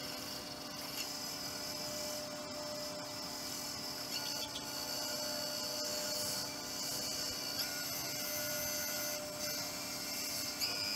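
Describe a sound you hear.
A cloth rubs against a spinning wooden bowl.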